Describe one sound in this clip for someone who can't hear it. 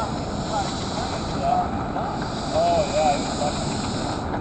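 A man talks quietly some distance away.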